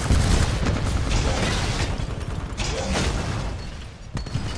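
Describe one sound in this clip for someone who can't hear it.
Heavy gunfire and explosions boom and rumble loudly.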